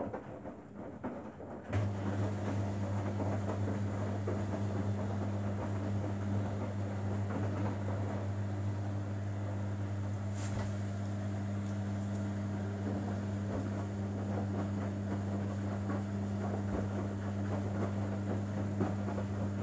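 Wet laundry tumbles and sloshes inside a washing machine drum.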